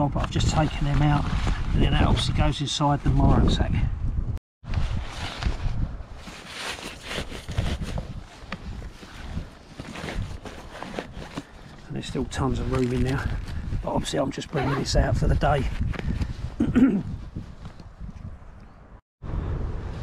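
Fabric rustles as a pouch is handled and packed into a bag.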